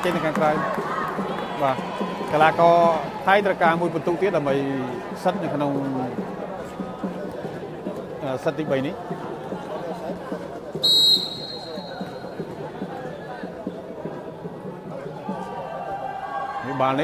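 A large crowd murmurs in an echoing hall.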